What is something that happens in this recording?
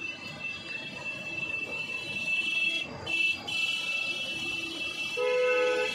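A knife scrapes softly as it peels a boiled potato.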